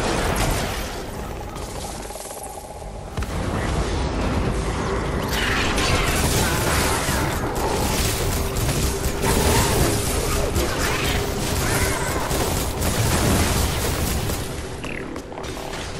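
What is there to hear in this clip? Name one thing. Game weapons fire and impacts crackle in rapid bursts.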